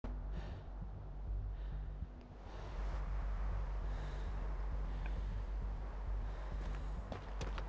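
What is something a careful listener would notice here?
Footsteps crunch slowly over snowy ground.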